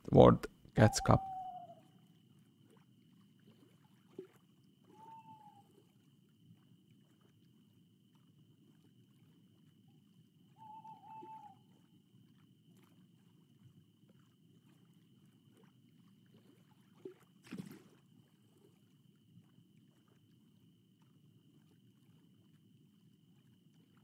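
Small waves lap softly against the shore.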